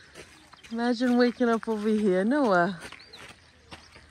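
A man's footsteps crunch on gravel.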